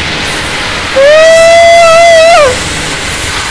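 A young man screams loudly into a close microphone.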